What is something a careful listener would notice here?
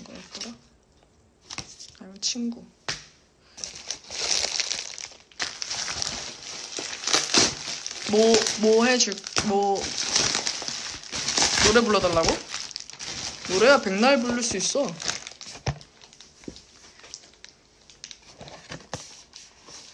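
Plastic packaging rustles and crinkles in hands.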